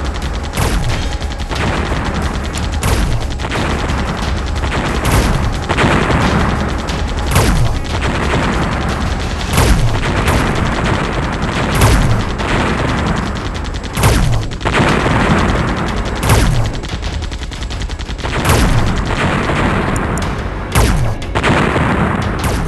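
Game turrets fire rapid laser shots.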